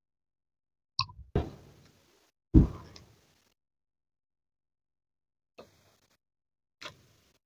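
A crisp flatbread crunches as a woman bites into it.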